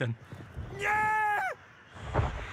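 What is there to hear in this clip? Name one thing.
A young man shouts a long, loud cry close by.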